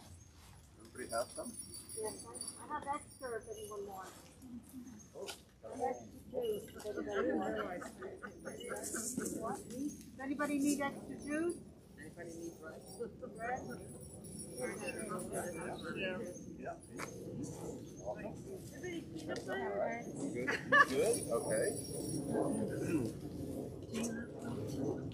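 Several men and women talk casually outdoors.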